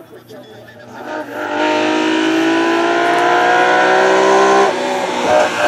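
A second rally car engine approaches and grows louder, revving through the gears.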